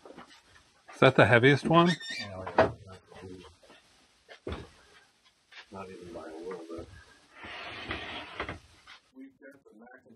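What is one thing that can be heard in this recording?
Wooden panels knock and scrape as a man handles an amplifier case.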